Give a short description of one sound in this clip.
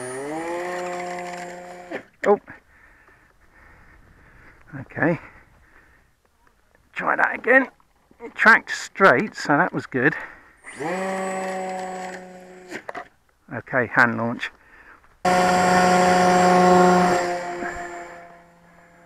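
A small model plane's electric motor whines, rising in pitch and fading away and back.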